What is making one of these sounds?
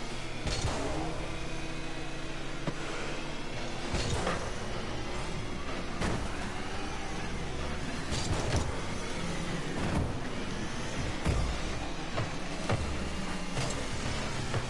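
A ball is struck with loud thumps in a video game.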